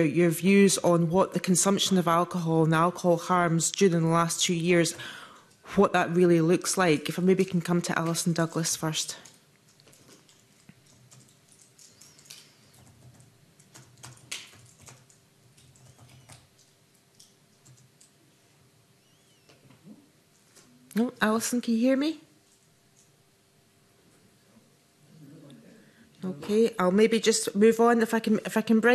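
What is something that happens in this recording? A middle-aged woman speaks steadily into a microphone.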